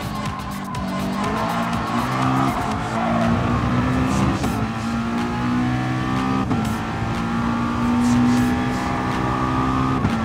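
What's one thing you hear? A racing car engine roars at high revs, rising in pitch and dropping briefly with each gear change.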